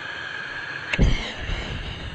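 A stove igniter clicks sharply.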